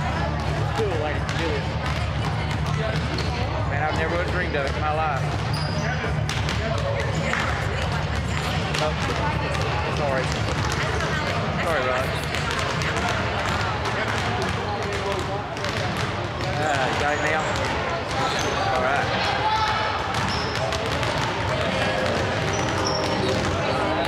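Many basketballs bounce on a wooden floor in an echoing gym.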